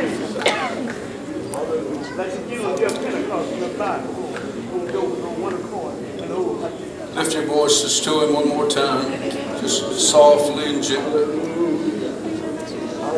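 A middle-aged woman speaks softly into a microphone close by.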